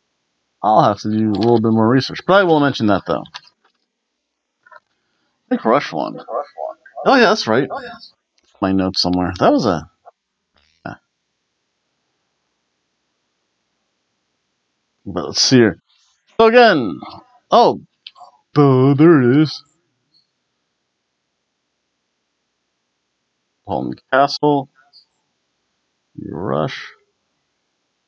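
A middle-aged man talks calmly into a close microphone, with pauses.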